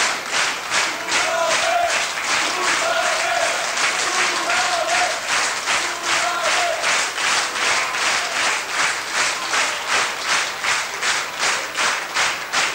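Cymbals and drums keep a steady, quick beat.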